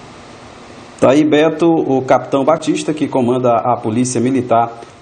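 A man speaks steadily into a microphone, close by.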